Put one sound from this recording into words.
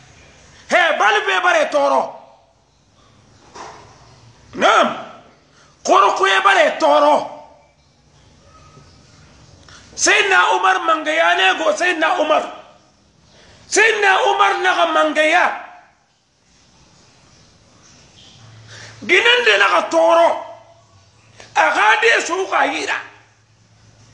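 A middle-aged man speaks forcefully and with animation, close to the microphone, in short bursts with pauses.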